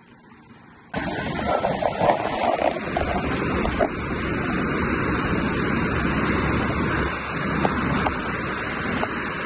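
A river rushes and flows steadily nearby.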